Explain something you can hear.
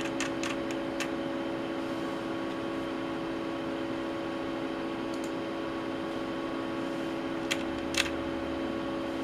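Electronic equipment hums steadily.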